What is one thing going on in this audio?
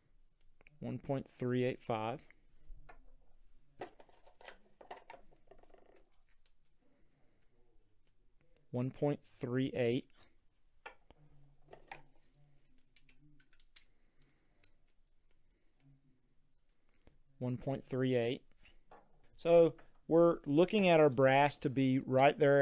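Small metal parts click and tap together.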